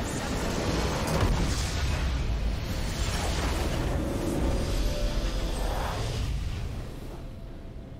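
Game spell effects crash and blast loudly.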